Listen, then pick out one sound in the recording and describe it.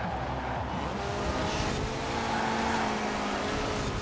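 Tyres screech on tarmac as a car slides through a bend.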